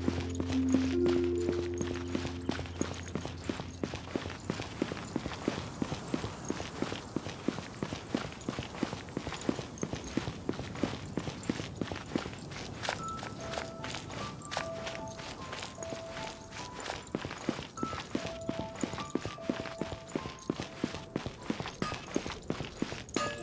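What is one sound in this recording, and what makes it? Quick footsteps run over stone paving.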